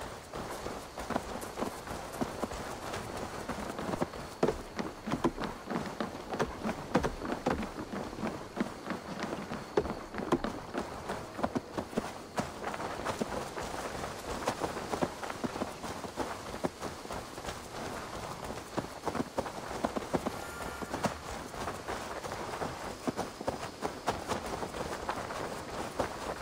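Footsteps run quickly over dirt and wooden planks.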